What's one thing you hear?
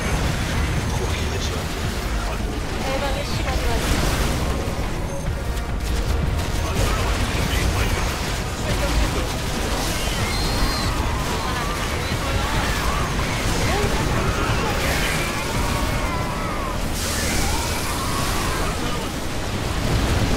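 Explosions boom again and again.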